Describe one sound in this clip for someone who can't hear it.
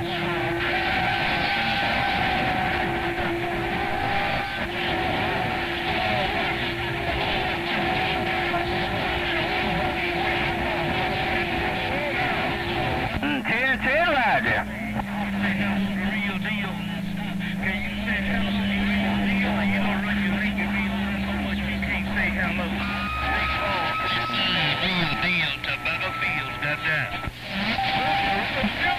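Radio static hisses and crackles steadily through a loudspeaker.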